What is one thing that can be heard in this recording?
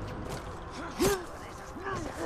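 A blade strikes flesh with a sharp thud.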